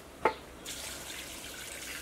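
Water pours into a pot.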